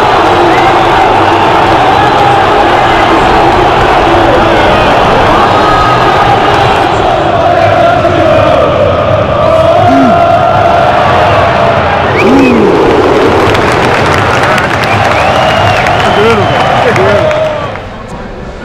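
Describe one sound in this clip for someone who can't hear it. A huge stadium crowd sings and chants loudly.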